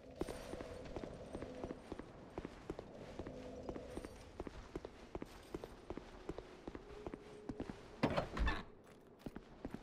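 Footsteps tap quickly on a stone floor.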